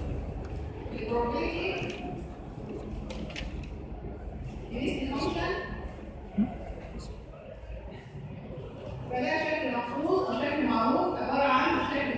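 A woman speaks calmly, as if lecturing.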